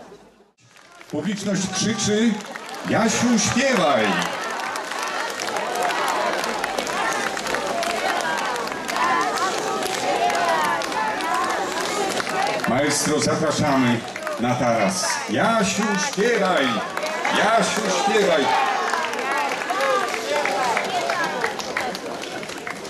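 A crowd of people sings together.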